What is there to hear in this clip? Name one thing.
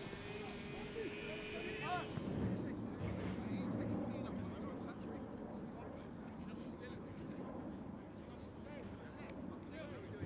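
Young men talk casually nearby outdoors.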